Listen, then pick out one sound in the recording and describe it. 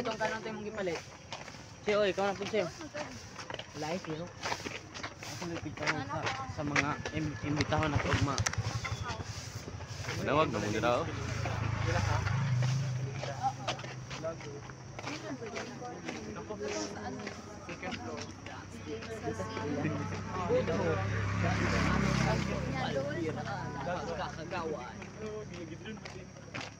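Teenage boys talk and laugh close by, outdoors.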